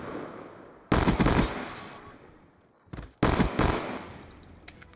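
Loud gunshots fire in quick bursts and echo away.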